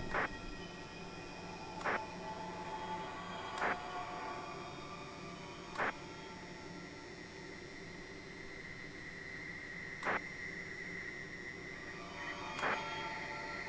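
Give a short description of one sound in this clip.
Buttons click on a game controller.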